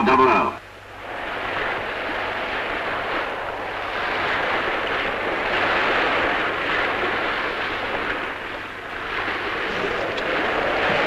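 Choppy sea water washes and rushes steadily.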